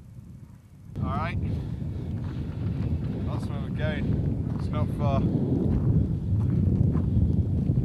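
A man talks with animation close by, outdoors.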